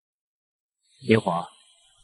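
A young man speaks a short word.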